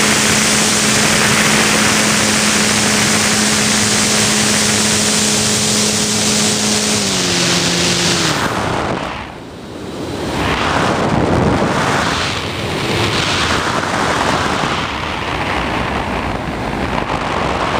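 Wind rushes loudly past a model aircraft, rising and falling.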